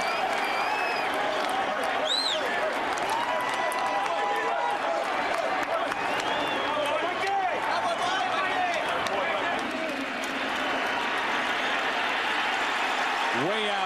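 A large crowd cheers loudly in a big open stadium.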